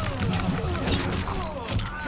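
Fiery blasts burst and crackle.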